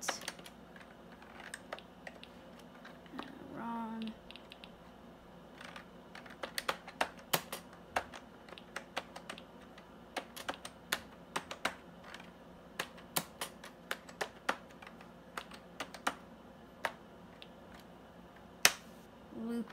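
Keys on a computer keyboard click in quick, uneven bursts.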